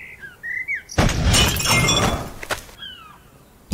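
An axe strikes with a heavy impact.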